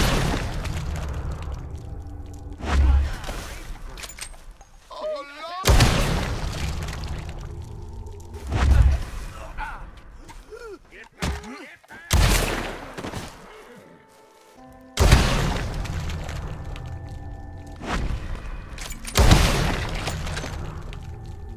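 Gunshots fire repeatedly and echo outdoors.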